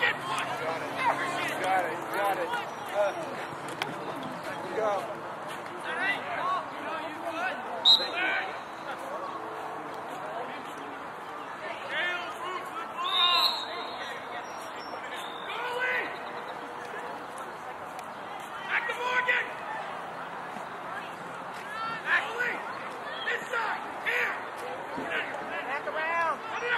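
Young lacrosse players shout to each other across an open field outdoors.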